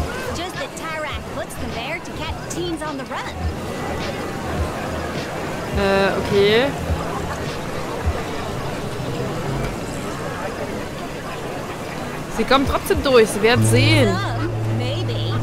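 A woman talks casually into a close microphone.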